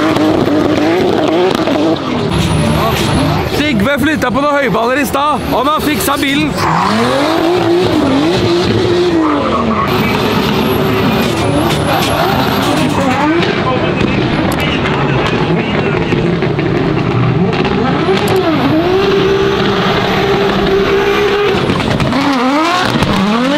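Tyres squeal loudly on asphalt.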